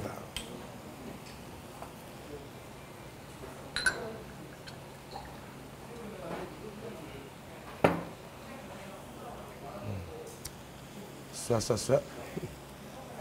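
Food sizzles on a hot pan.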